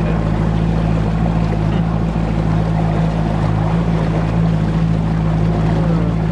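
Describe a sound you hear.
A boat's outboard motor drones steadily.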